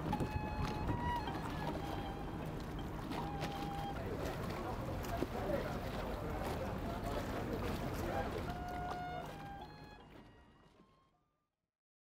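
Several string instruments play a slow melody outdoors and fade away.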